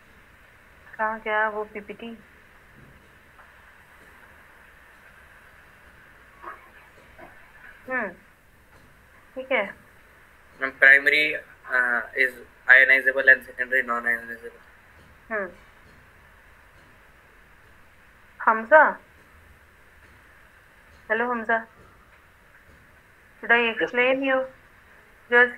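A woman speaks in short phrases over an online call.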